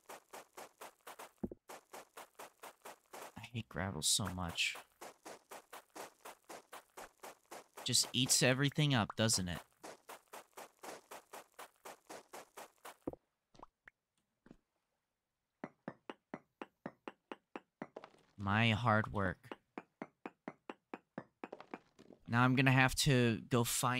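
A pickaxe chips rapidly at stone in quick, even strikes.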